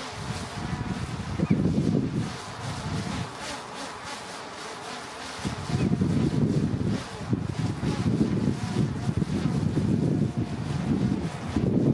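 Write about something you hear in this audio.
A train rumbles along the tracks in the distance, drawing nearer.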